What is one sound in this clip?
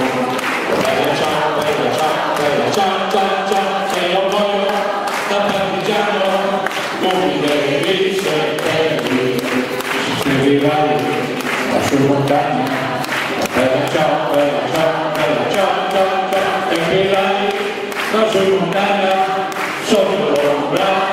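A crowd claps hands in time.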